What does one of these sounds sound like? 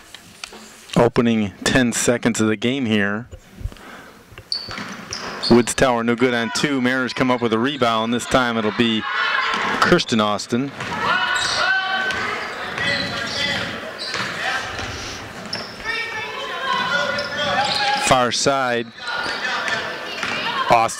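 A crowd cheers and shouts in an echoing gym.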